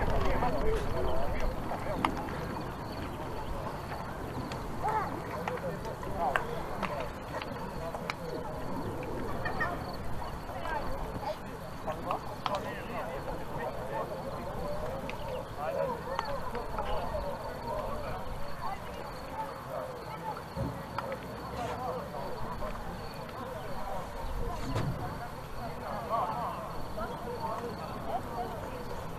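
Men shout and call out across an open field, some distance away.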